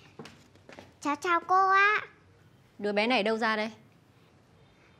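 A young woman speaks curtly, close by.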